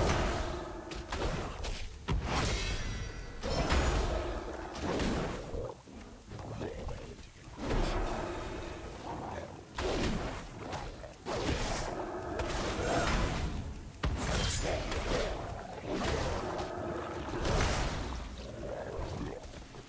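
Weapons strike and thud against a creature.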